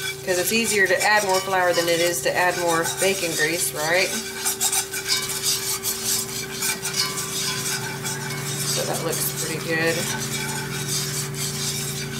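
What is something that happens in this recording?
Butter and flour sizzle and crackle in a hot pan.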